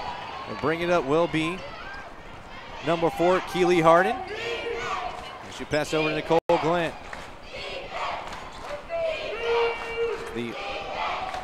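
A crowd murmurs and cheers from the stands.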